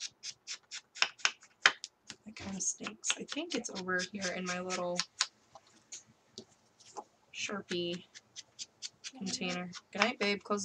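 Paper rustles and taps as cards are handled.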